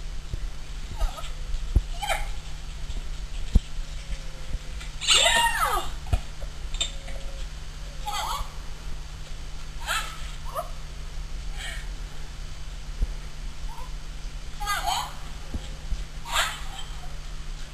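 A woman calls out short commands to a dog outdoors.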